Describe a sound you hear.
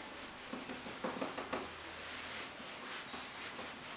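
A cloth rubs and wipes across a whiteboard.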